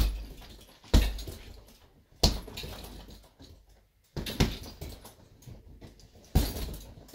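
Fists thud heavily against a punching bag.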